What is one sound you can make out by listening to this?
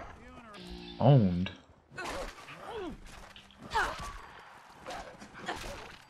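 A dog barks and snarls.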